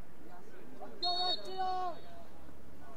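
A referee's whistle blows sharply, twice.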